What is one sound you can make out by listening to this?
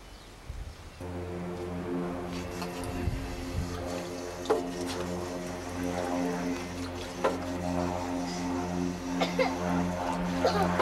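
Water runs and splashes from a drinking fountain.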